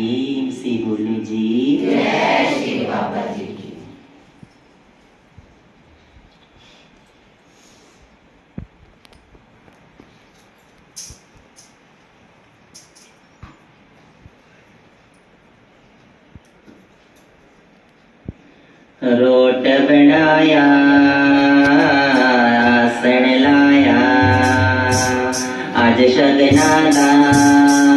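A man sings into a microphone through a loudspeaker.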